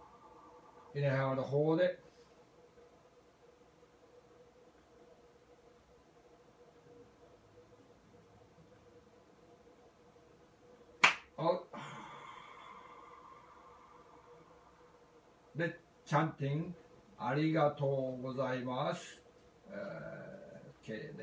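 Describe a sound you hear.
An elderly man speaks calmly and close by, with long pauses.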